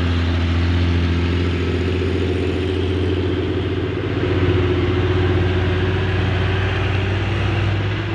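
A truck engine rumbles loudly as the truck drives past close by.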